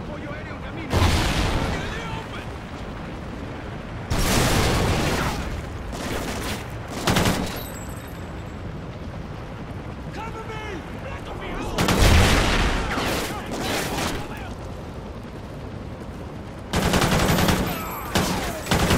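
Gunfire bangs out in loud bursts in an echoing hall.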